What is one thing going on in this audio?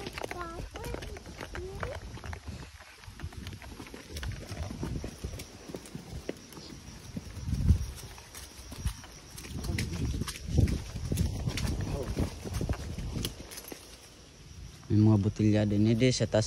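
Horse hooves thud softly on grassy ground.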